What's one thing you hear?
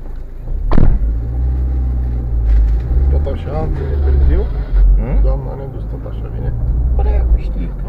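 Tyres roll over a rough road surface.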